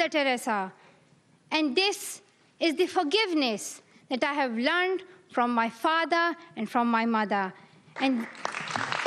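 A young girl speaks calmly into a microphone in a large hall.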